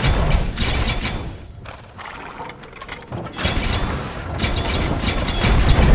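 Siege rams thud against a gate.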